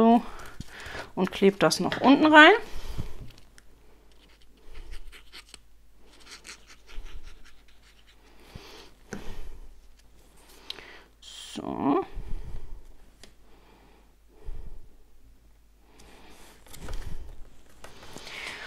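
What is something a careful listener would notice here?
Card paper rustles and taps as hands press it down.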